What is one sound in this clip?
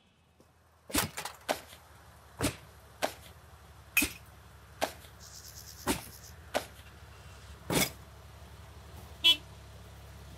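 Trash bags thud into a metal dumpster.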